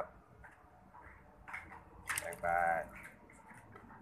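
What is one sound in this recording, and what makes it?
Liquid pours and splashes into a metal pot.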